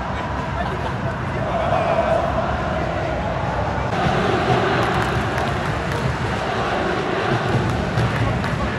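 A large crowd cheers and chants in an open stadium.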